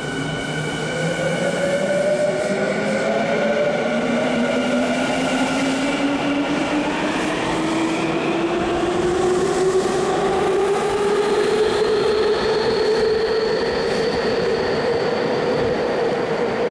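A train's electric motors whine, rising steadily in pitch as the train speeds away.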